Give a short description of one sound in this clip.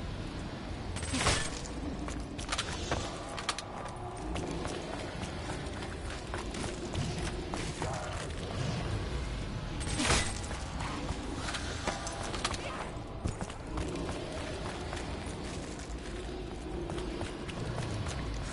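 Creatures growl and snarl nearby.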